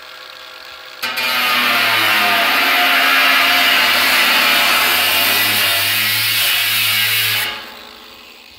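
An angle grinder screeches loudly as it grinds into a metal drum.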